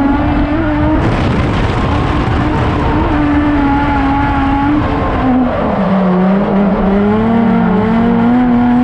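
Tyres squeal and hiss on the pavement as the car slides.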